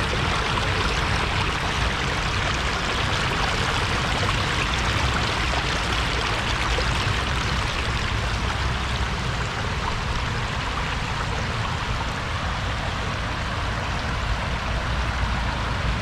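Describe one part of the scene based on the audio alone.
Water rushes over a low weir close by.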